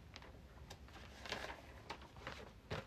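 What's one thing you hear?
Paper pages rustle as a booklet is turned.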